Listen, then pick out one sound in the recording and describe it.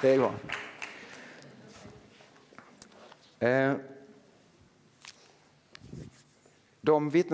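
A man speaks slowly through a microphone in a large echoing hall.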